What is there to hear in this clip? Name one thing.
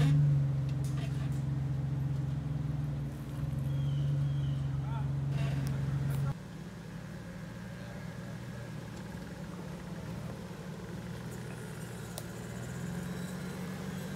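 A truck engine rumbles low and steady close by.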